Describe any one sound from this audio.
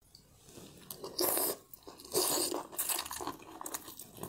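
A woman slurps food noisily close to a microphone.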